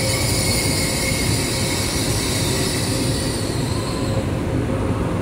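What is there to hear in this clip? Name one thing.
A train's motors whine with a high, thin tone that fades away.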